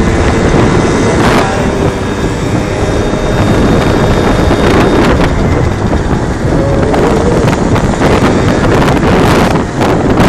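A moped scooter rides along a road just ahead.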